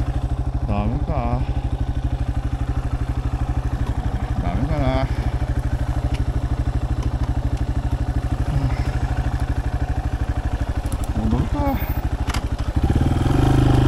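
A motorcycle engine idles with a steady, fast putter close by.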